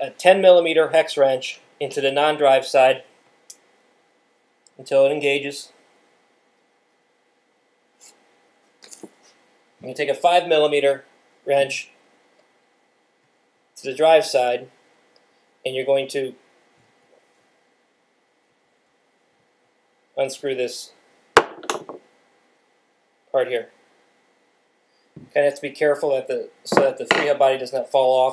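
A man talks calmly close by, explaining in short bursts.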